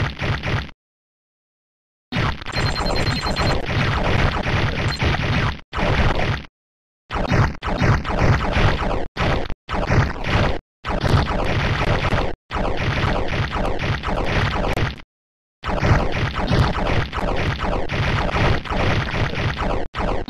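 Electronic game music plays in bursts.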